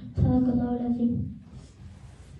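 A man chants in a long, sung tone through a microphone, echoing in a large room.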